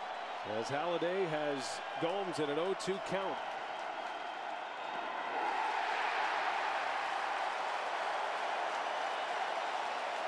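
A large crowd murmurs and cheers in an open stadium, swelling louder after a pitch.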